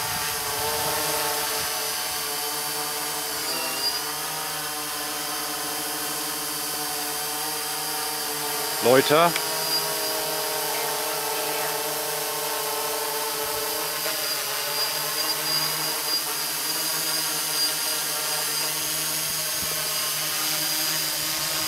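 An electric quadcopter's rotors whine as it hovers overhead.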